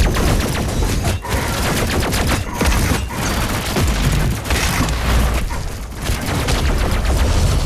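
A gun fires rapidly in loud bursts.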